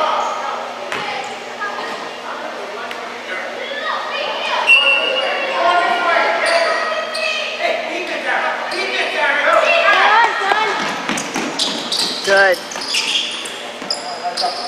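Children and adults shout and call out in a large echoing gym.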